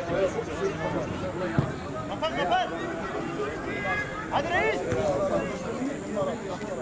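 Men shout and call out to each other outdoors across an open playing field.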